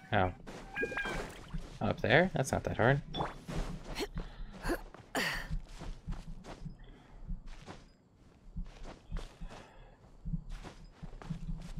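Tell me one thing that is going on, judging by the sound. Footsteps patter quickly over grass and rock.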